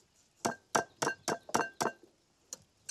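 A grater scrapes rhythmically against a rind.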